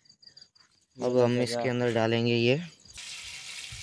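An elderly man speaks loudly nearby.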